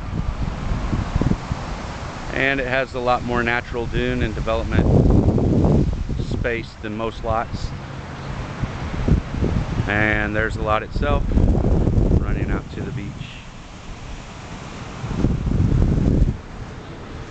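Wind gusts buffet loudly outdoors.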